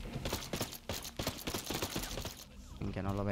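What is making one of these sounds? Suppressed gunshots pop in quick succession.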